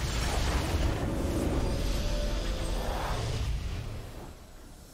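A triumphant game fanfare swells and then fades.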